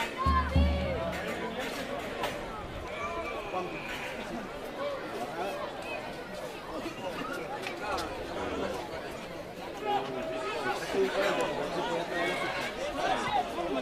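Young men shout and call to each other outdoors at a distance.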